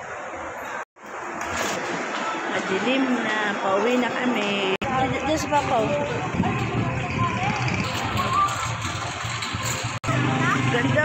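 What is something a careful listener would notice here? A shopping cart's wheels rattle across the ground.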